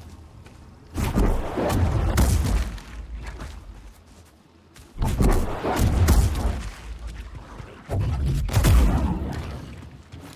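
Blasts boom and rumble nearby.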